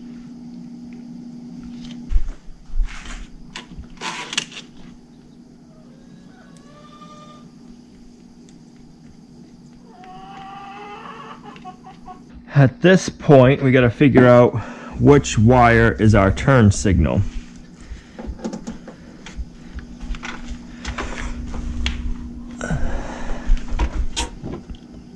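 Plastic parts click and rattle as wiring is handled up close.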